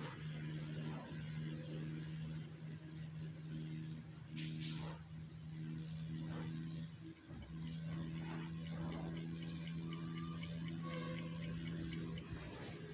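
A motorcycle engine hums steadily at high speed.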